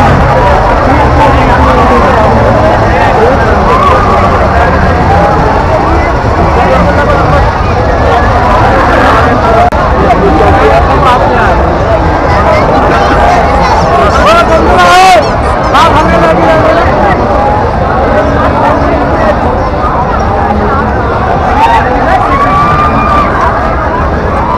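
A large crowd of men and women chatters loudly all around outdoors.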